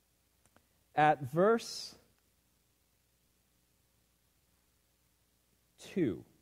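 A man reads aloud slowly through a microphone.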